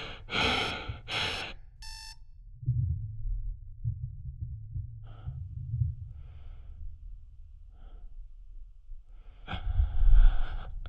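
A man breathes heavily and raggedly inside a helmet.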